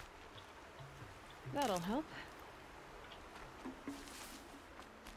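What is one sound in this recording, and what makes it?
Footsteps run through grass and brush.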